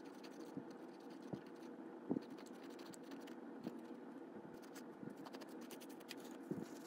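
A paper towel rubs softly against a small metal part.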